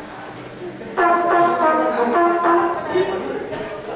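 A trumpet plays a bright melody, loudly near the end.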